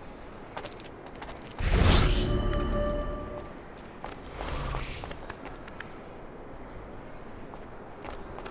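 Footsteps patter quickly on stone and roof tiles.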